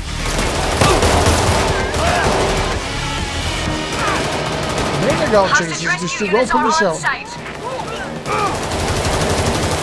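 A rifle fires in loud bursts.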